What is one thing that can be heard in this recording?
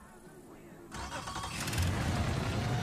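A small plane's engine starts up.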